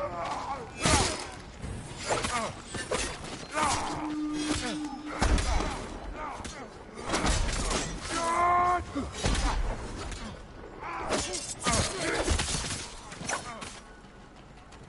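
Swords clash and strike again and again.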